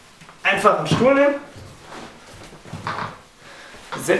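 A chair clatters as it is set down on the floor.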